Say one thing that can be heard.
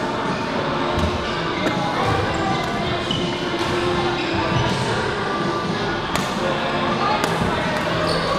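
Shuttlecocks are struck with sharp pops of rackets.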